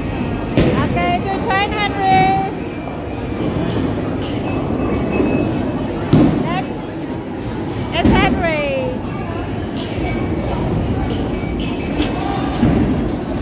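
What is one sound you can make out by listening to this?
Bowling balls rumble along wooden lanes in a large echoing hall.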